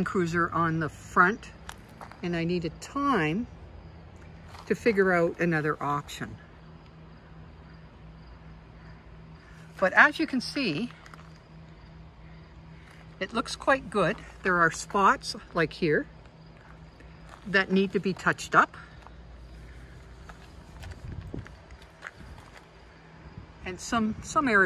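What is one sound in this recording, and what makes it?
A woman talks in short bursts close to the microphone.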